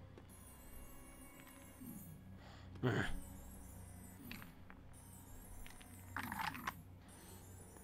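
Magic spells crackle and sparkle in short bursts.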